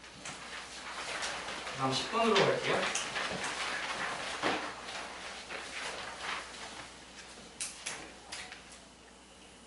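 A felt eraser scrubs across a chalkboard.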